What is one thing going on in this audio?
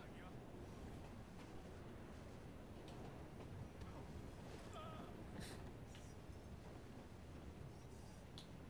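A steam train rumbles steadily along its tracks.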